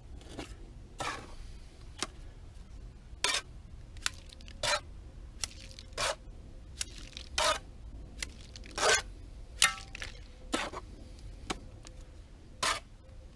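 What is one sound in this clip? A metal trowel scrapes and taps against a wooden board.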